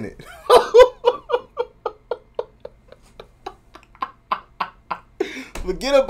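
A young man laughs hard in bursts close to a microphone.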